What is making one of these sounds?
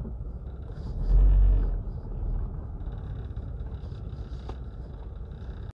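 A car drives on a dirt road, heard from inside.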